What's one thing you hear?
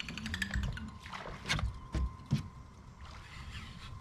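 A fishing rod swishes as a line is cast.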